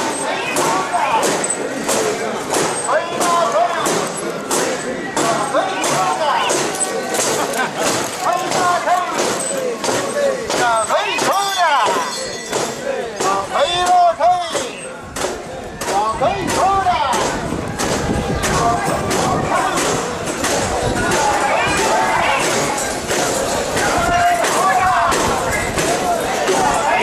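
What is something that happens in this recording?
A crowd of men chants loudly in rhythm, close by, outdoors.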